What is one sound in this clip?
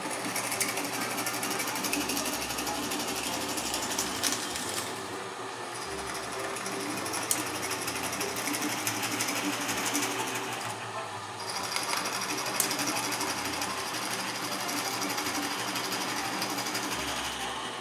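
A drill bit grinds and scrapes through wood.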